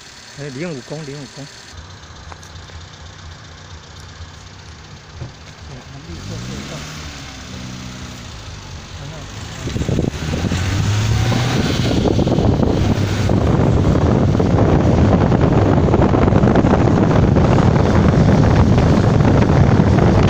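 A car engine hums as the vehicle drives along a road.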